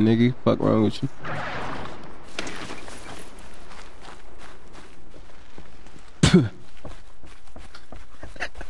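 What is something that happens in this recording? Footsteps crunch through snow at a walking pace.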